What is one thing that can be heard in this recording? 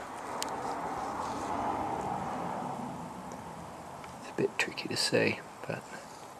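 Water fizzes softly as small bubbles rise in a jar.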